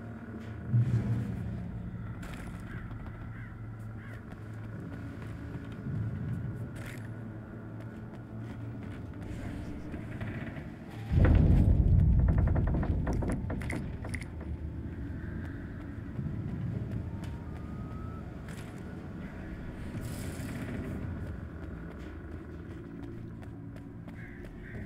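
Footsteps thud on a creaking wooden floor.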